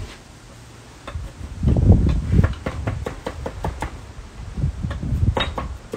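A knife chops herbs on a wooden board with quick knocks.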